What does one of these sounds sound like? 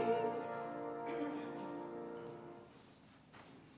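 A congregation sings together in a large hall and the singing fades out.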